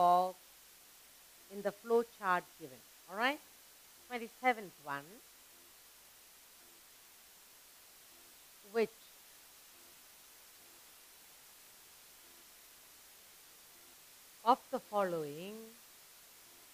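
A woman speaks calmly and clearly close to a microphone.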